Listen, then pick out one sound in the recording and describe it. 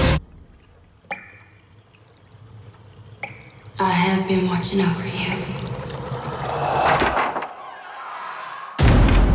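Water laps softly in a bathtub.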